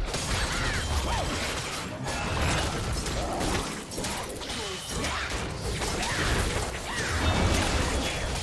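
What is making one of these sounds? Magic attacks whoosh and crackle as game characters fight.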